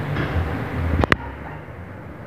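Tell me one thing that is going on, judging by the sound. A metal oven door swings open with a sharp clank.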